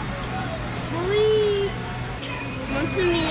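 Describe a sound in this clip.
A young girl speaks close by with excitement.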